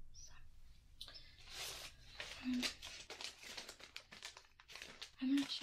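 A plastic bag crinkles and rustles in someone's hands.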